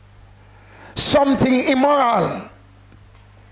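A man preaches loudly through a microphone.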